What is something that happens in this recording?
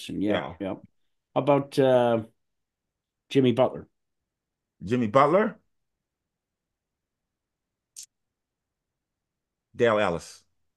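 An older man speaks calmly in short phrases over an online call.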